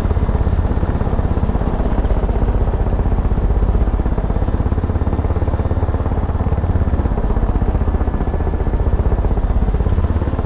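Helicopter rotor blades chop rapidly and steadily.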